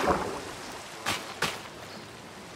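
A block breaks with a crunch.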